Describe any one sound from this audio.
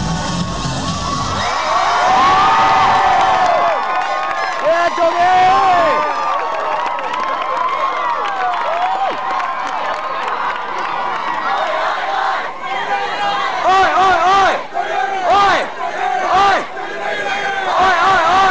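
Many young voices sing together loudly.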